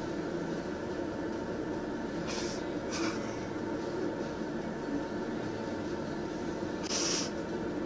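A man talks calmly outdoors, some distance away.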